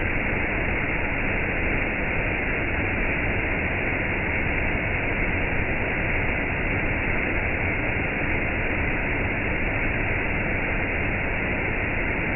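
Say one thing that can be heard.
A waterfall rushes and splashes steadily over rocks close by.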